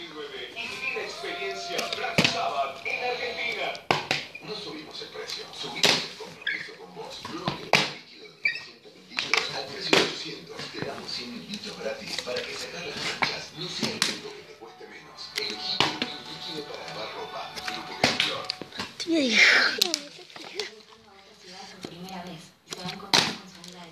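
A plastic bottle is kicked and clatters across a hard tiled floor.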